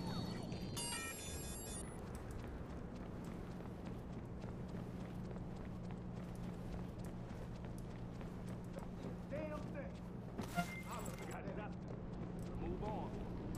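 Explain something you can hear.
Footsteps shuffle softly on concrete.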